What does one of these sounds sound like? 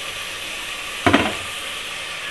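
A spoon clinks against a metal pot.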